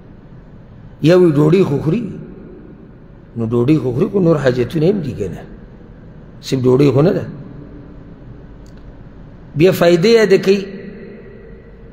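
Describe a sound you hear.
A man speaks slowly and with feeling through a microphone, in short phrases with pauses, echoing in a large hall.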